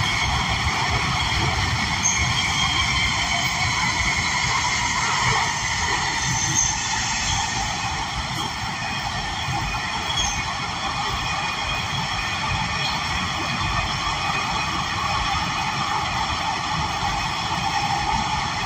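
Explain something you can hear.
A subway train rumbles and hums steadily along the tracks.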